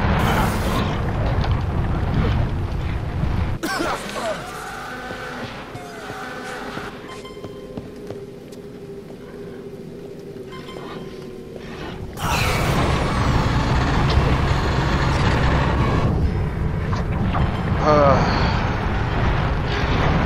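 A young man talks loudly with animation close to a microphone.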